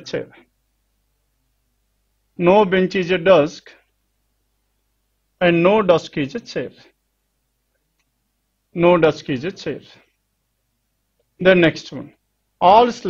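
A man speaks calmly and clearly in short phrases with pauses, close to a microphone.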